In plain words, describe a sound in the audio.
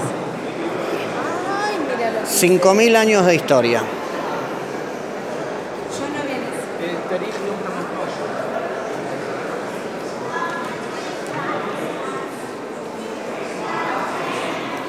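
Visitors murmur and talk in a large echoing hall.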